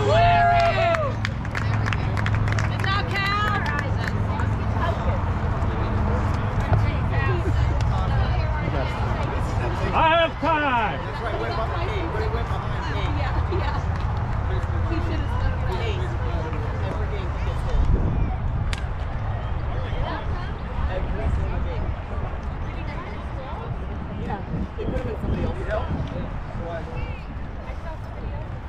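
Boys and men shout and call out across an open field outdoors.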